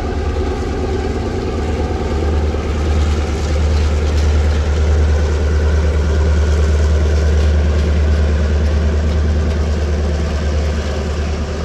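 A diesel locomotive engine rumbles loudly nearby.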